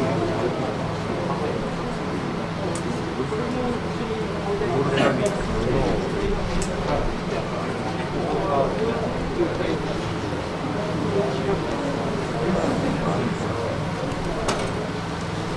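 Men talk quietly close by.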